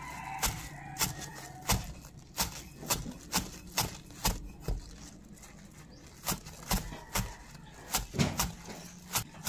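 A knife chops through fresh herbs on a wooden board with sharp, regular knocks.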